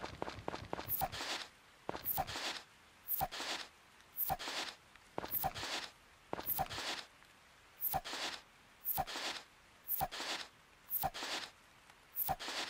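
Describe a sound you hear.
A tool thuds into soil again and again at an even pace.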